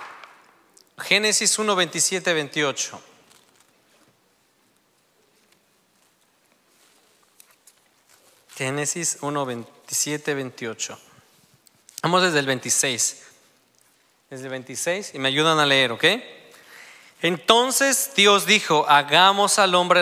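A man speaks slowly and earnestly into a microphone, with pauses between his phrases.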